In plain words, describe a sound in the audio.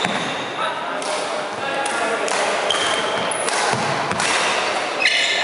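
Badminton rackets strike shuttlecocks with sharp pops in a large echoing hall.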